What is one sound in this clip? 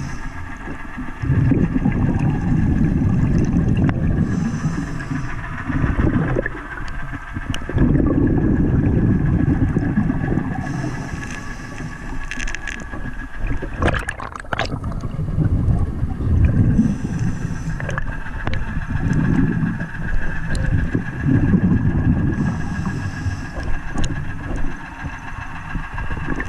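Water churns and rumbles in a low, muffled wash underwater.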